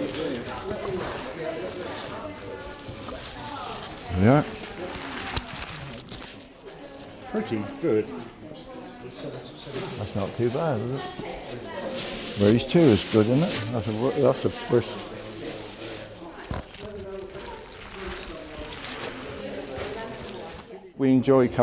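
Elderly men talk casually nearby in an echoing hall.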